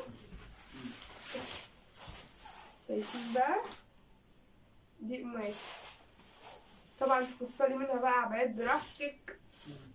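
Fabric rustles as a large cloth is unfolded.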